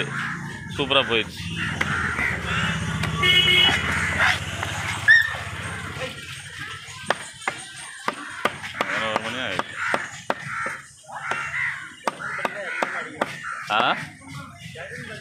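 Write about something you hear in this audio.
A heavy knife chops through fish on a wooden block with sharp knocks.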